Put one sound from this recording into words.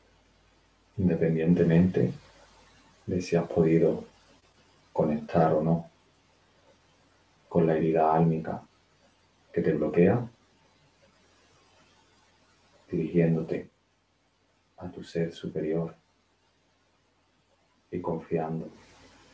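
A young man speaks calmly in short phrases with pauses, close to a microphone.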